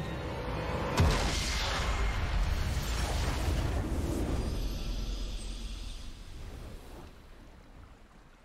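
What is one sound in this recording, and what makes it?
A triumphant game fanfare swells and then slowly fades.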